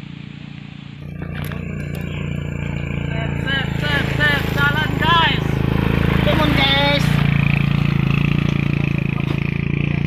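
A motorbike engine grows louder as it approaches and passes close by.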